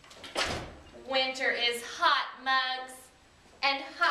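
A young woman exclaims excitedly and laughs.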